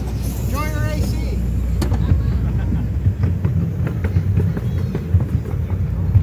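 Steel wheels clack over rail joints.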